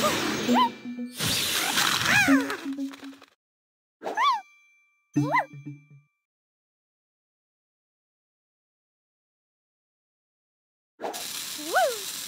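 Bright magical whooshes and sparkling bursts play as tiles clear.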